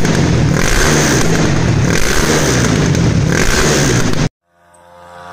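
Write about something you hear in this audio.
A motorcycle engine revs loudly with a pulsing roar.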